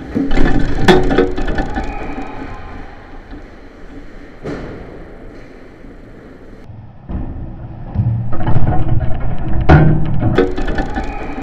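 A hockey puck clacks against sticks.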